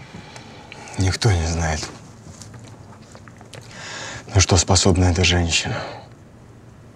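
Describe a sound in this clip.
A young man speaks with a sly, mocking tone close by.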